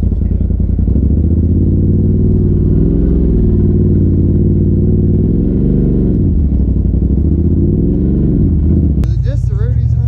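An off-road vehicle's engine revs up and down.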